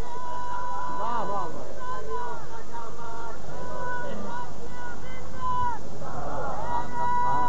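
An elderly man speaks in a rising and falling, chanting voice through a microphone.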